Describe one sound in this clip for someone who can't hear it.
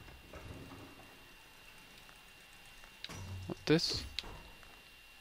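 A lift rumbles and clanks as it moves and stops.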